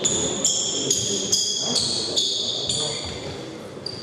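A table tennis ball clicks rapidly back and forth across a table in an echoing hall.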